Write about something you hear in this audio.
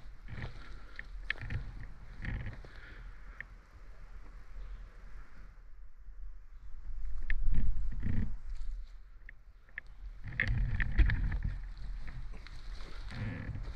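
Wind gusts through leafy trees outdoors.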